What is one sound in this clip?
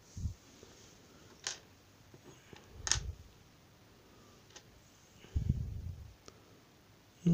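Small metal parts click and tap against a hard surface as a hand handles them.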